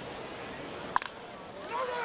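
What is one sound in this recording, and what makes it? A baseball bat cracks against a ball.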